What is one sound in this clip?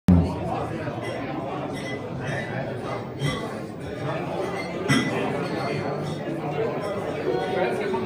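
A drum kit is played with crashing cymbals and thumping drums.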